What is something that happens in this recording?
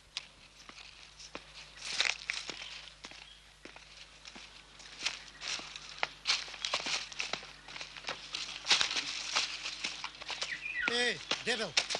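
Footsteps crunch through dry leaves and twigs.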